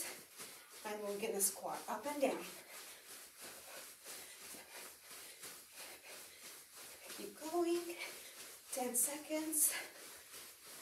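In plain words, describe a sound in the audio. A young woman speaks briefly and with energy, close by.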